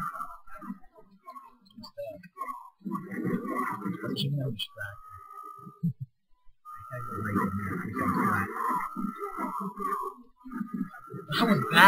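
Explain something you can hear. Swords clash and slash in a rapid fight.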